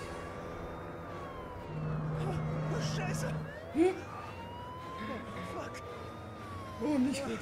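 A police siren wails and rises and falls.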